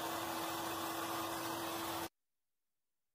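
A mitre saw motor whines loudly.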